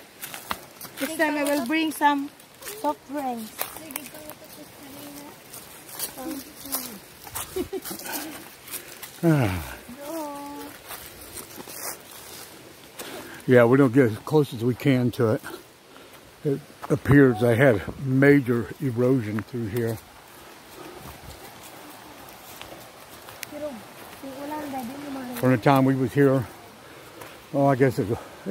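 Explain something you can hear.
Young women talk and call out with animation close by, outdoors.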